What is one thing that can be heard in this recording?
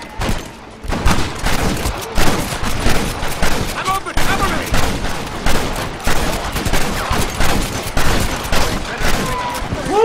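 Gunshots ring out in quick, repeated bursts.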